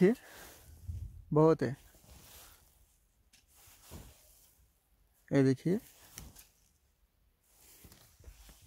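Cloth rustles as it brushes past.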